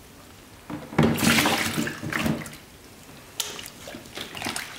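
A metal bowl scrapes and clanks as it scoops vegetables into a container.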